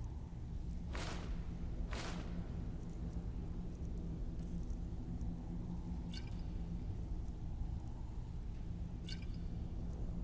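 Coins clink several times.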